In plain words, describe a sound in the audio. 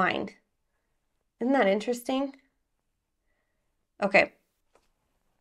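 A woman speaks calmly and close to the microphone, in short bursts with pauses.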